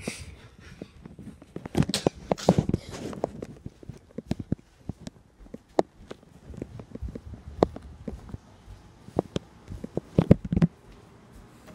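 Footsteps patter across a hard floor.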